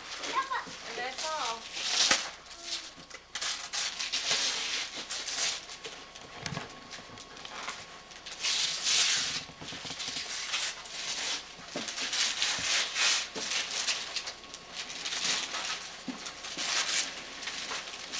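Wrapping paper crinkles and tears as gifts are unwrapped.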